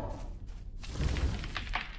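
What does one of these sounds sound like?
Footsteps crunch over leaves and soft ground.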